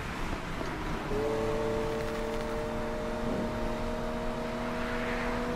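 Tyres hiss over a wet road.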